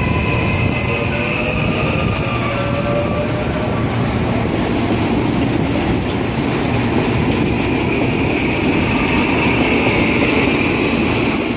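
Train motors whine steadily as the train pulls away.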